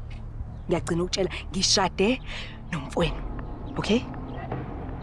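A young woman speaks firmly and closely.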